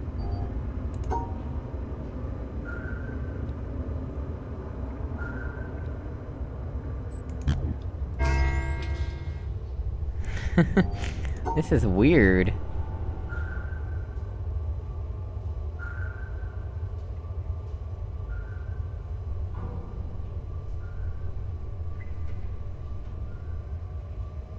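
Short soft electronic tones chime every few seconds.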